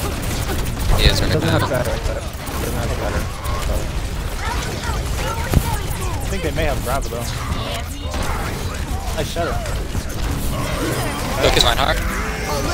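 Explosions boom in a video game battle.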